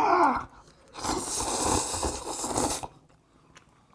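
A young man slurps noodles loudly close to a microphone.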